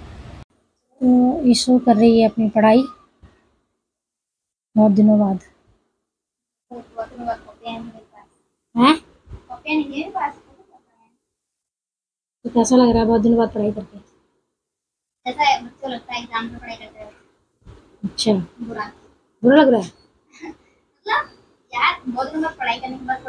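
A young girl talks close by in a calm, chatty voice, with short pauses.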